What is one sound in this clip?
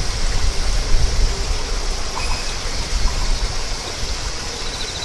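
Wind blows across an open field.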